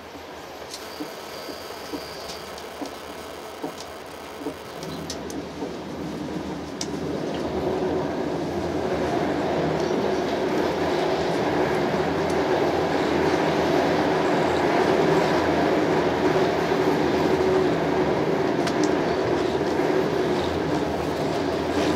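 A train rumbles along the tracks, growing louder and steadier.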